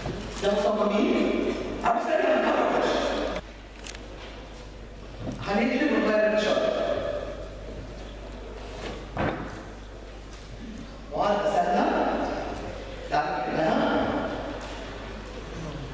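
An older woman speaks calmly through a microphone.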